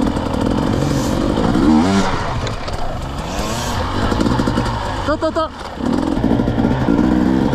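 A dirt bike engine revs loudly up close, rising and falling.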